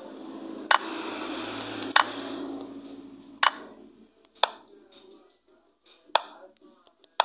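Chess pieces click sharply onto the board, one move after another.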